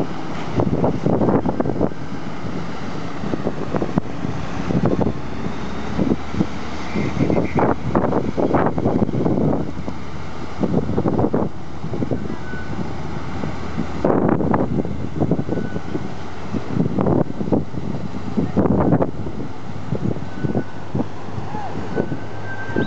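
Floodwater rushes and churns across a road.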